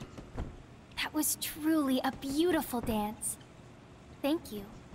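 A young woman speaks cheerfully and sweetly, close and clear.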